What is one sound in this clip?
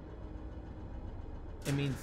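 A metal switch lever clunks.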